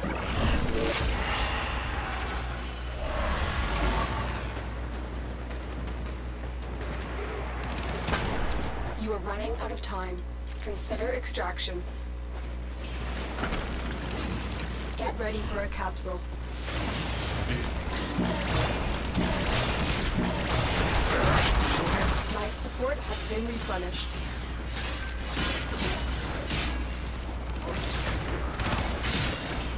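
Laser weapons fire in rapid crackling bursts.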